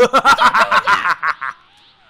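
A character powers up with a rushing surge.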